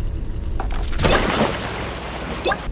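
Water splashes loudly as a vehicle lands in it.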